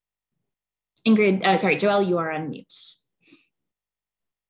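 A young woman speaks warmly over an online call.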